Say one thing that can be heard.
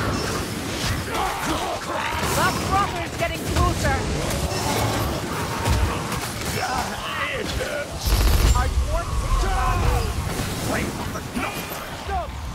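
Blades slash and thud into creatures in rapid, chaotic combat.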